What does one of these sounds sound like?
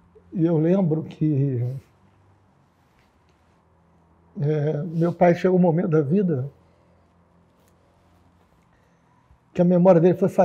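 A middle-aged man speaks slowly and emotionally, close by.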